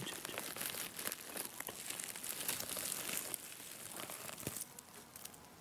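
Dry leaves rustle close by.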